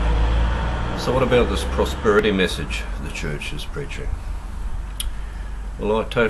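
A middle-aged man speaks calmly close to the microphone.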